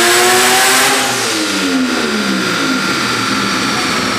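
A car engine drops quickly back down from high revs.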